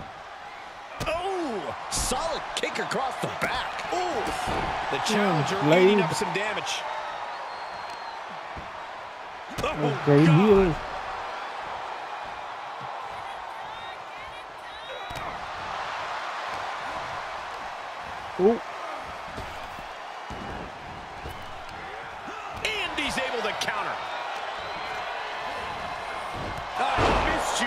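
Heavy blows and bodies thud against a wrestling ring mat.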